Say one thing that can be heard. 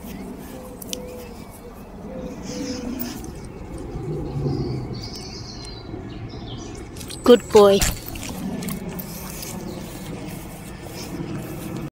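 Grass rustles under a dog's paws.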